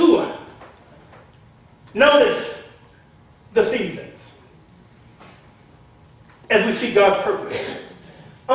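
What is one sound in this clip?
A man preaches with emphasis in an echoing room, in short bursts with pauses.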